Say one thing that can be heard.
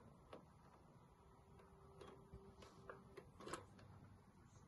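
A plastic console case knocks and rattles as hands handle it.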